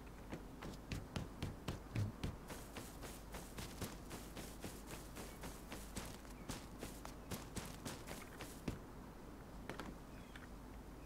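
Footsteps crunch quickly over dirt and grass.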